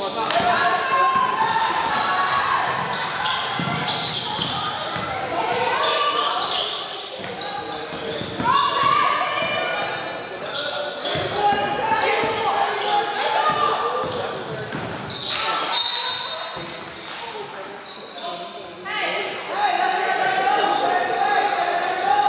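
Young women shout and call out across an echoing gym.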